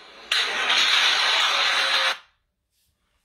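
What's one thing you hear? Loud noise plays from a phone's loudspeaker.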